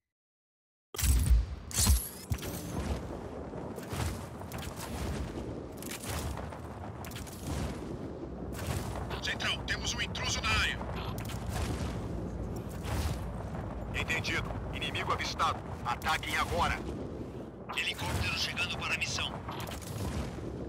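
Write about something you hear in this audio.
Wind rushes loudly past during a fast glide through the air.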